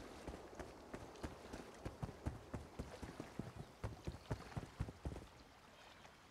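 Footsteps thud quickly across hollow wooden boards.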